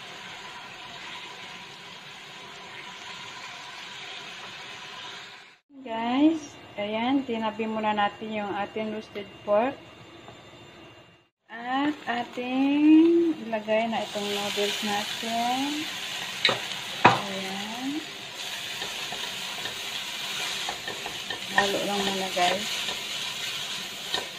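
A silicone spatula stirs and scrapes food in a wok.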